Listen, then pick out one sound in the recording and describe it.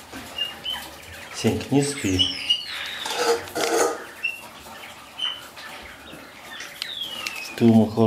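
A dog eats noisily from a metal bowl.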